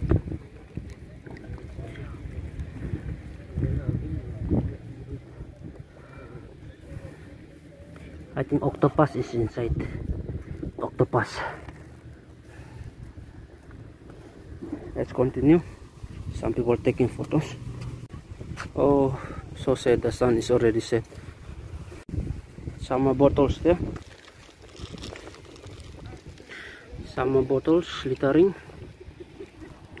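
Water laps gently against a stone wall.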